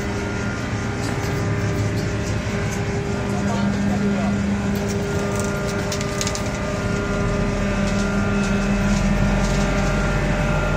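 Plastic crates clatter on a deck.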